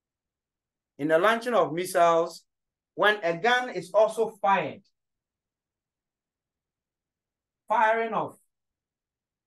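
A man speaks calmly and clearly, close by, in short phrases.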